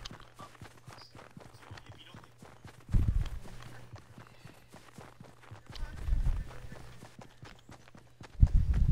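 Quick footsteps patter on grass.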